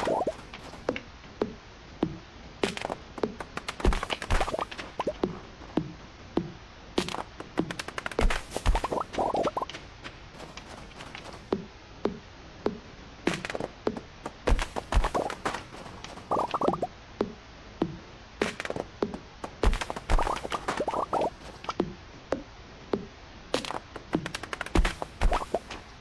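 An axe chops wood with repeated sharp thuds.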